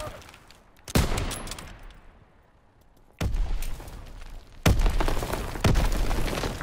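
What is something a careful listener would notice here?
Sniper rifle shots crack loudly with echoing booms.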